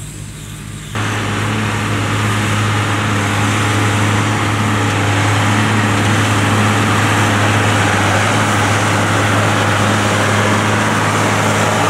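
A baler whirs and clatters as it gathers grass.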